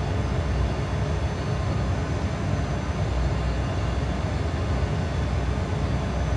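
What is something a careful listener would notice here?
Jet engines drone steadily, heard from inside a cockpit.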